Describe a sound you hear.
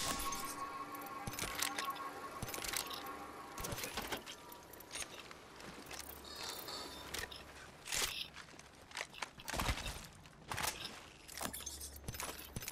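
Game menu clicks tick sharply as items are picked up.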